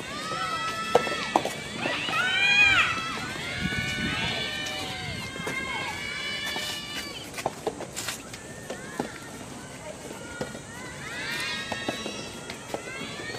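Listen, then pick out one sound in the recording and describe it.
Young women call out loudly to each other outdoors.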